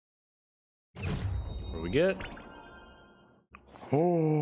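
A magical sparkling whoosh swells and fades.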